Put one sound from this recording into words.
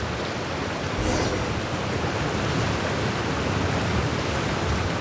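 Water splashes and sloshes as a swimmer paddles through it.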